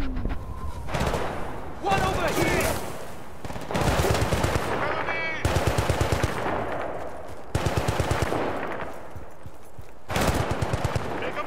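A rifle fires in rapid bursts close by.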